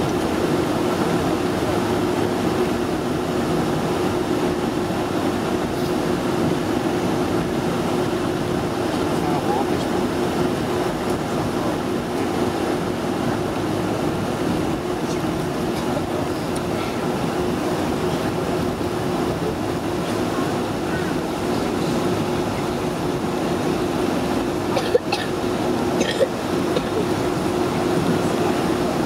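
Jet engines hum and roar steadily inside an aircraft cabin.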